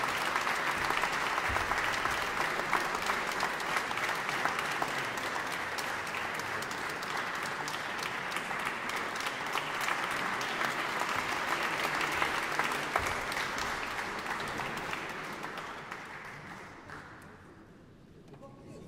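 An audience applauds in a large echoing hall, then the applause fades.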